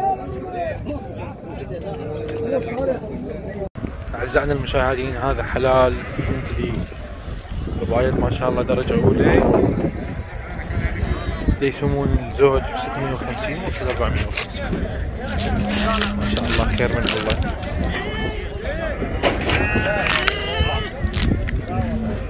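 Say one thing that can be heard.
A crowd of men murmurs in the distance outdoors.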